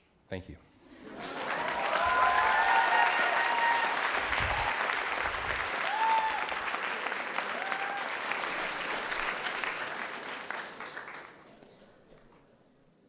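An audience applauds and cheers in a large hall.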